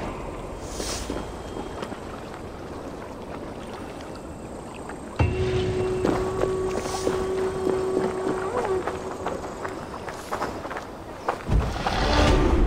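Footsteps run quickly over stone and earth.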